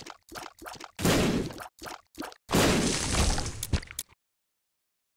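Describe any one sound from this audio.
Game monsters squelch and splatter as they are hit.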